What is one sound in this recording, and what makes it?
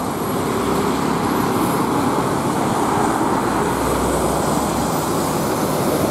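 A diesel coach bus engine rumbles as it drives past.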